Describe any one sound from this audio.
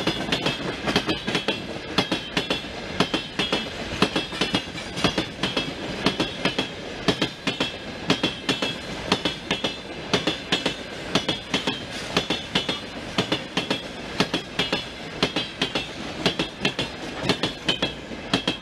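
Freight wagons rumble and squeal as they roll by.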